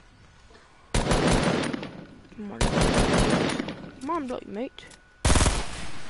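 A rifle fires with a loud blast.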